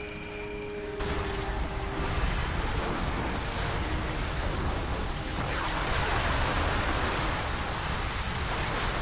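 Gunfire and explosions of a battle rumble and crack.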